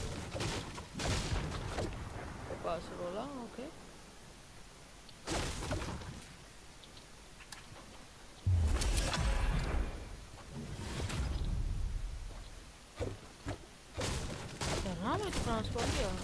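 A pickaxe strikes wood with sharp knocks.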